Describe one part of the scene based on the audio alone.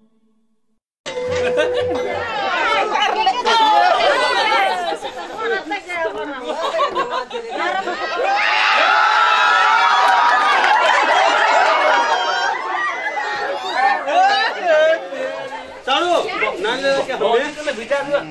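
A crowd of men and women chatter and shout excitedly nearby.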